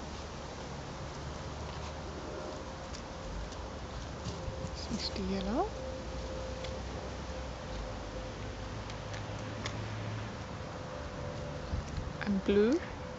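Paws patter and rustle on grass.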